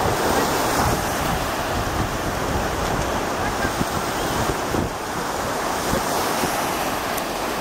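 Dogs splash through shallow water.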